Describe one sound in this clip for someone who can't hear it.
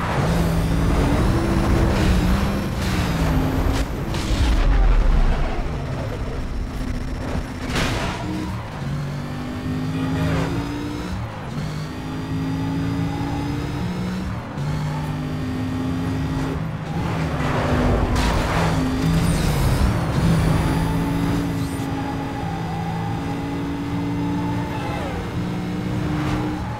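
A car engine roars loudly and shifts up and down through its gears.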